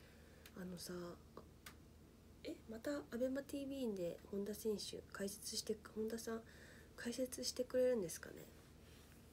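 A young woman speaks calmly and close to the microphone.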